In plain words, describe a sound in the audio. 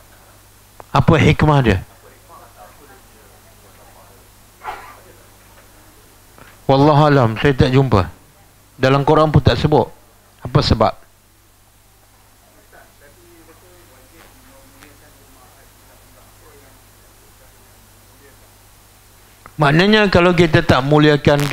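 A middle-aged man speaks in bursts through a headset microphone.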